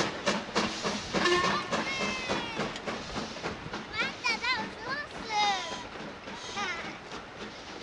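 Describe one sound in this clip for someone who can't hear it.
Train wheels squeal sharply on the rails.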